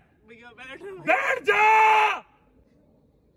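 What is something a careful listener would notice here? A young woman cries out close by.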